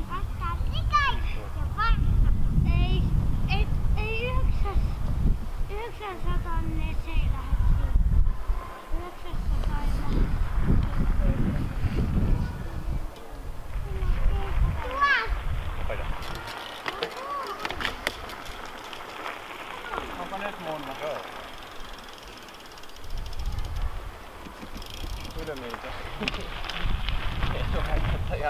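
A man talks calmly outdoors.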